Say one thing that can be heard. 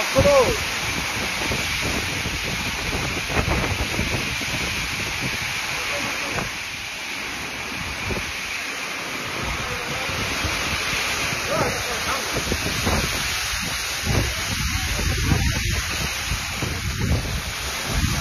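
Gusty wind rumbles and buffets the microphone.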